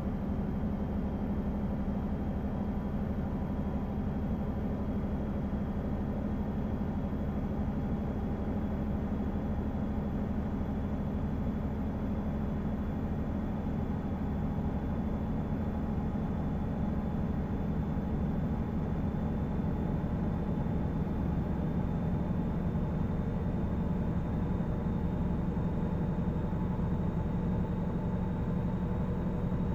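A truck engine drones steadily at low revs.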